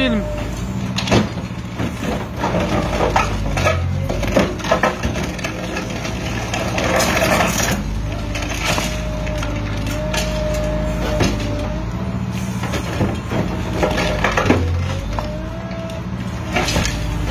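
Concrete cracks and crunches as a hydraulic crusher bites into it.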